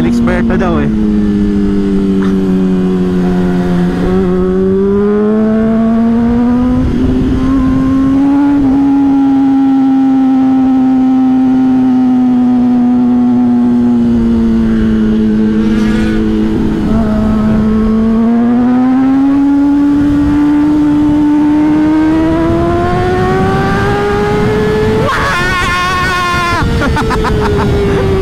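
Wind rushes past a riding motorcyclist.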